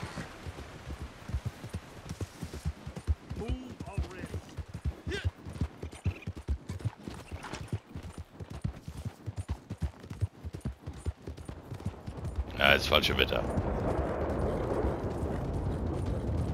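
A horse's hooves thud steadily on a dirt trail.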